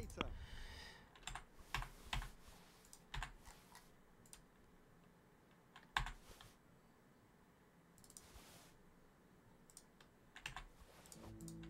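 Soft menu clicks tick as a list is scrolled through.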